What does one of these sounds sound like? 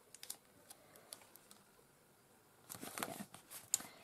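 Sticky tape is pressed and smoothed down on paper.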